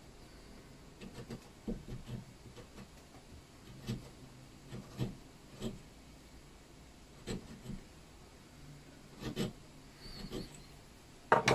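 Small metal parts click and tick together in the hands.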